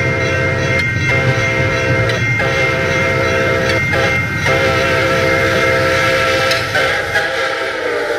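A diesel train engine drones steadily as a train approaches.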